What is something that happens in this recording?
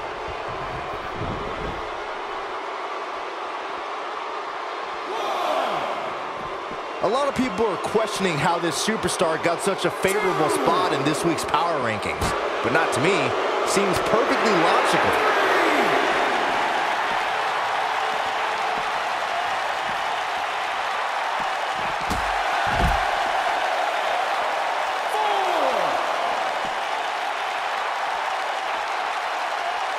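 A large crowd cheers steadily in an echoing arena.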